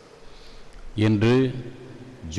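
A man chants through a microphone in a large echoing space.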